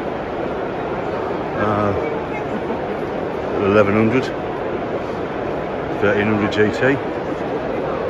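A crowd murmurs and chatters in a large indoor hall.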